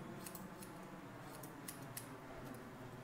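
Scissors snip through hair.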